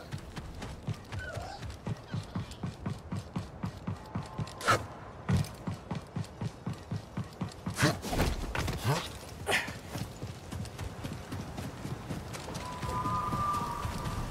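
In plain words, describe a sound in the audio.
Footsteps thud quickly and steadily on hard ground.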